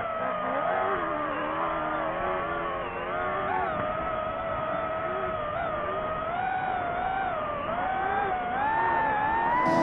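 Gravel and dirt crunch under a car's tyres.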